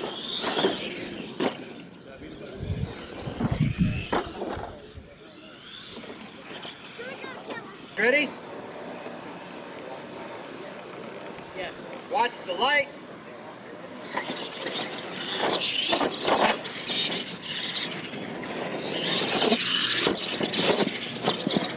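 Small electric motors whine and rev as toy trucks race over dirt.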